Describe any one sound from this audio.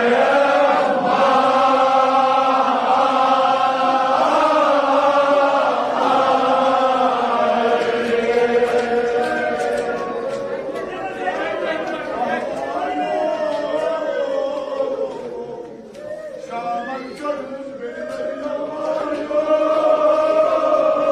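A crowd of men chants loudly together in a large echoing hall.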